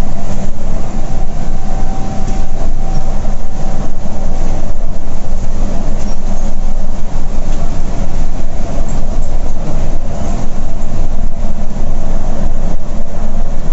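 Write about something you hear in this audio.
Tyres roar on asphalt beneath a moving coach.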